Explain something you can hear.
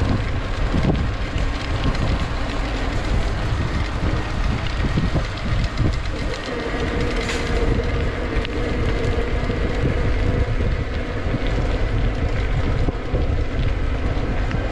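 Tyres roll and rattle on a paved path.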